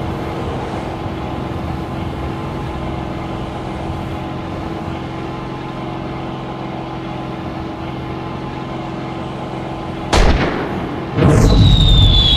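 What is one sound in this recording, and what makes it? A propeller plane engine drones steadily.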